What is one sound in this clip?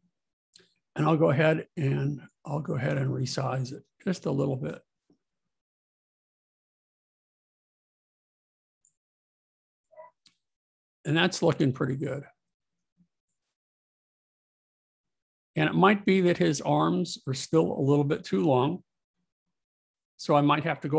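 A middle-aged man speaks calmly and closely into a microphone, in bursts with pauses.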